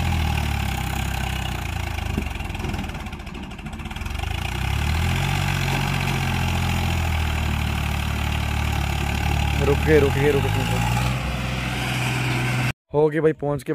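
A tractor engine chugs and labours up a rough slope.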